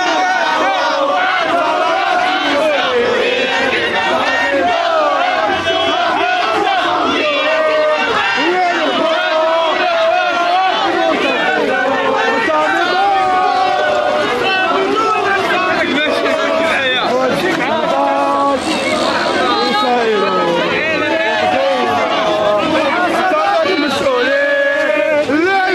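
A large crowd of people chants and shouts loudly outdoors, close by.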